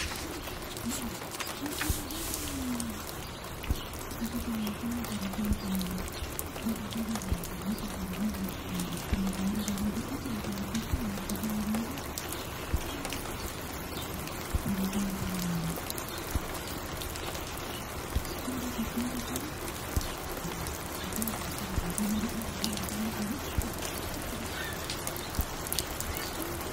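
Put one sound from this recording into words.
A vinyl record crackles and pops on a turntable.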